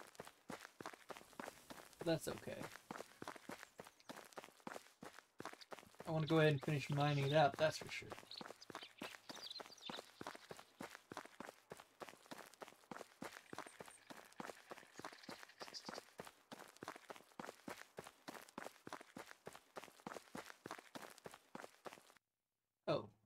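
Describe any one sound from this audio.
Footsteps crunch steadily along a dirt path.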